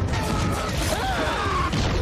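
Blaster shots fire in rapid bursts with sparks crackling.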